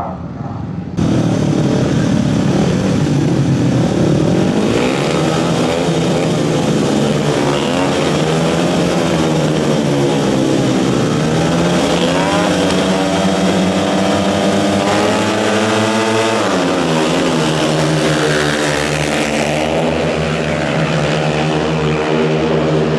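Several racing motorcycle engines roar and rev loudly, rising and falling in pitch.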